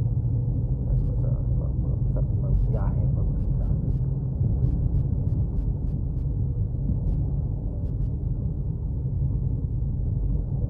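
Tyres roll along the road with a low rumble.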